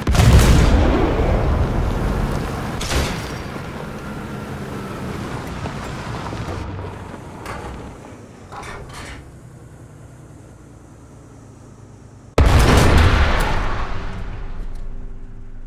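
A tank cannon fires with a loud boom that echoes away.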